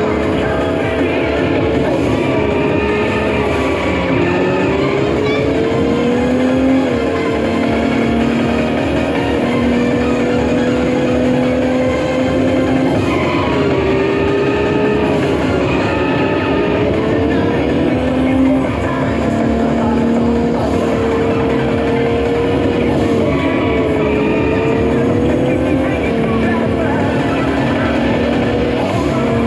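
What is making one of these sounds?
A racing game's engine roars loudly from speakers, rising and falling in pitch.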